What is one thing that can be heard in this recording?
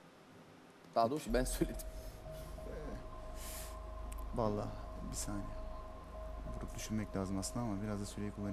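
Another man speaks with animation into a handheld microphone.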